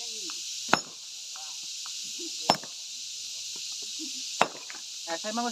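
A sledgehammer strikes stone with sharp, heavy cracks every couple of seconds.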